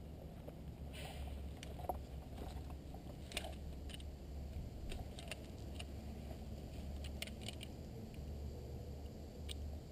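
Metal clips clink and click.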